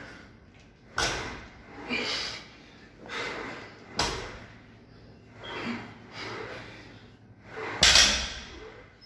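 A heavy barbell thuds down onto a rubber floor.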